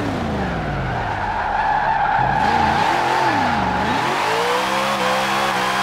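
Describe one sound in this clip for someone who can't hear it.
Tyres squeal as a car skids sideways.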